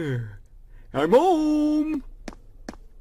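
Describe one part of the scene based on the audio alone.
A man speaks loudly with animation.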